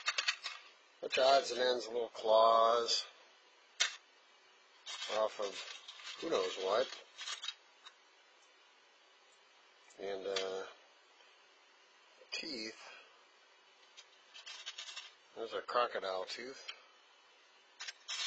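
Small metal parts rattle and click in a plastic box as they are sorted by hand.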